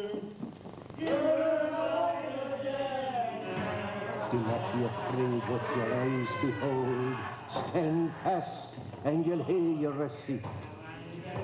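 An elderly man speaks forcefully, close by.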